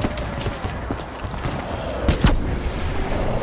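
A gun fires loud shots in quick bursts.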